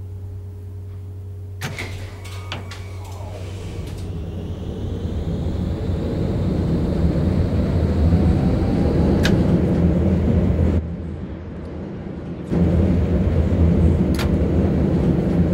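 A tram rumbles along rails, growing louder as it picks up speed.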